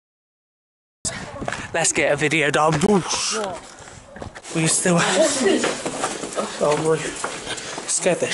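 A teenage boy talks excitedly, close to the microphone.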